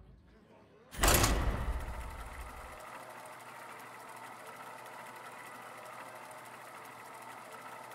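A low mechanical whirring hum plays steadily from the game.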